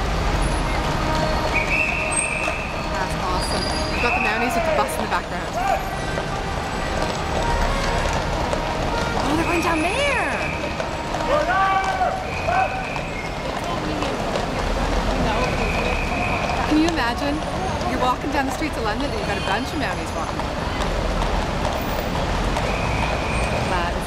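Horses' hooves clop on a paved street.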